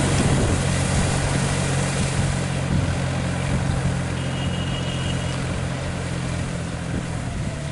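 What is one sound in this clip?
Steel cage wheels churn and splash through wet mud.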